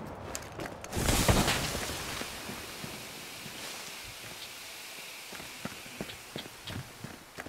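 A grenade bursts with a loud hissing blast.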